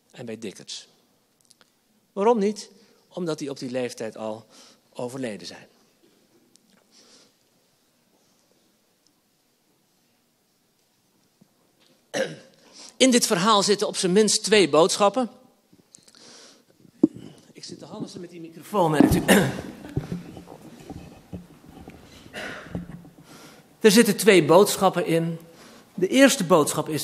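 A man speaks through a microphone in a calm, lecturing manner.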